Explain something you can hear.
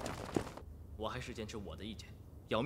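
A young man speaks firmly and calmly nearby.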